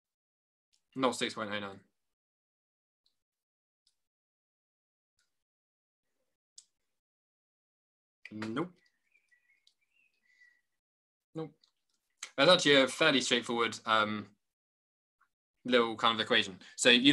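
A man speaks calmly in short bursts through an online call microphone.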